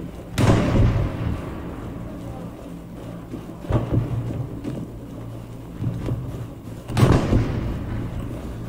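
A rifle fires loud shots that echo through the forest.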